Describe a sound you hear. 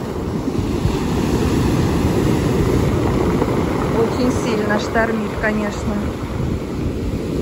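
Waves crash and wash over a pebble beach.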